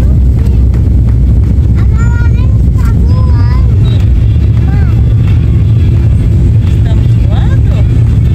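A plane's engines roar steadily from inside the cabin.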